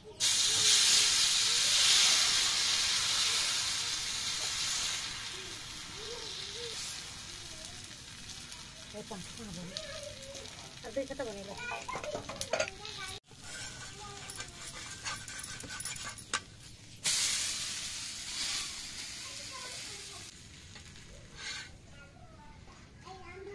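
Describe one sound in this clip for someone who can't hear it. Dough sizzles on a hot pan.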